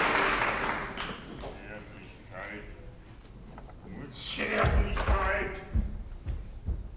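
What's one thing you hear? An elderly man speaks with feeling, a little distant.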